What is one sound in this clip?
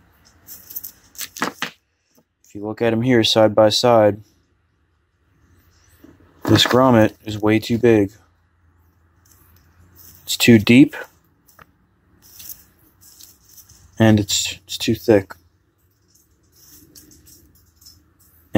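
Plastic wire connectors click and rattle as they are handled.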